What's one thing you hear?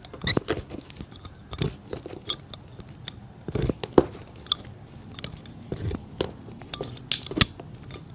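A knife scrapes and cuts against a shoe's leather and sole.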